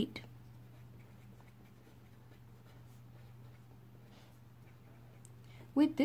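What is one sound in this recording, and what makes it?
A pen scratches across paper as it writes.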